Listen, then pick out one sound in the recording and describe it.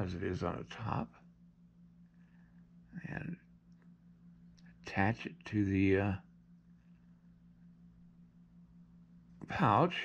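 A small tool scrapes softly against clay.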